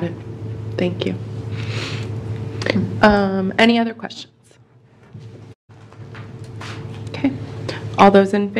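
A woman speaks through a microphone in a large room.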